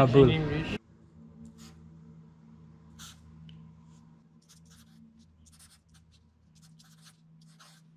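A marker squeaks softly across paper.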